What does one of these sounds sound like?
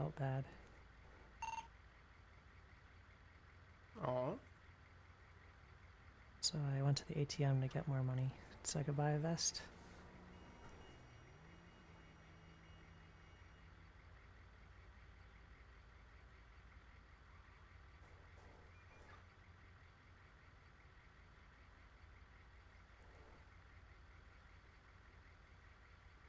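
An ambulance engine idles with a low steady hum.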